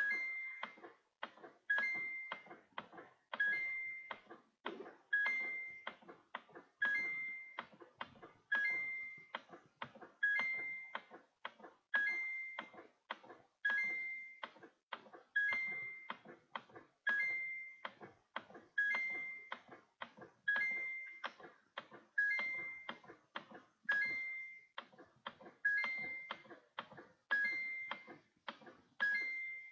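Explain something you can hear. A bright two-note video game chime rings at regular intervals.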